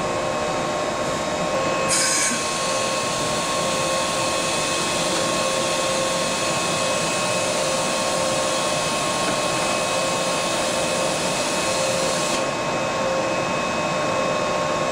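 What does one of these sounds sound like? Machinery hums steadily.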